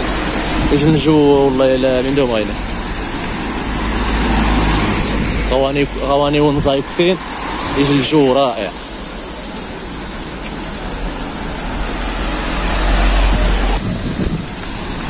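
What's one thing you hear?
Car tyres hiss over a wet street.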